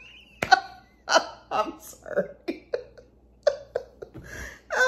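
A woman laughs close by in bursts.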